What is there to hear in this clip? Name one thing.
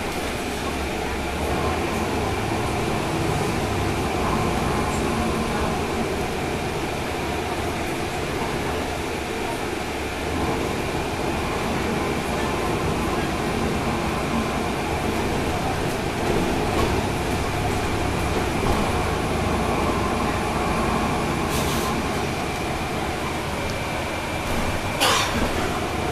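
The bus rattles and hums as it rolls along the street.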